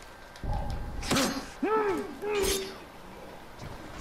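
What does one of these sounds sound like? A blade slashes and strikes with sharp impacts.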